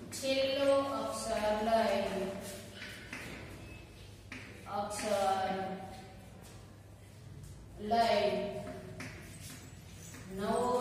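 A woman speaks clearly and steadily, close by.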